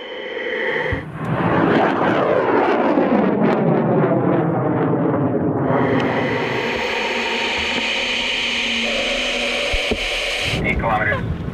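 A rocket motor roars loudly as it launches and fades away.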